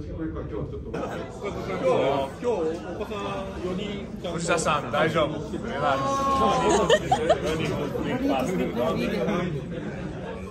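Several young men chat and laugh close by.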